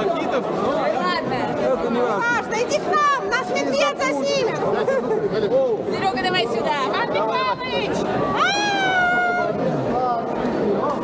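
Several people whoop and cheer excitedly.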